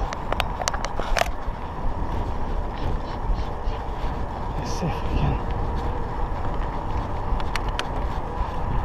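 A bicycle rattles with sharp clicks over bumps.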